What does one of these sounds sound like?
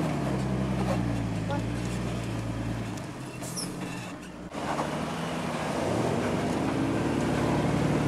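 An engine rumbles steadily close by.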